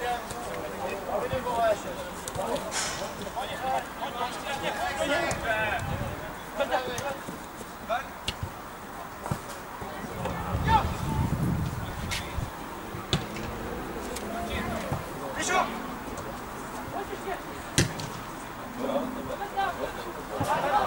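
A football is kicked with a dull thud, now and then.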